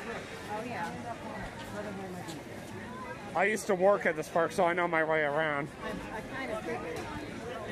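A crowd chatters outdoors all around.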